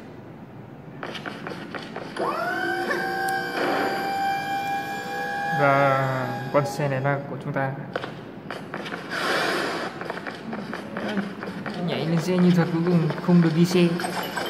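Upbeat game music plays through a small phone speaker.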